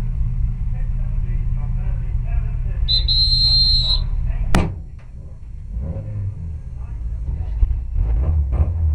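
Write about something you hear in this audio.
Cloth rubs and rustles right against the microphone.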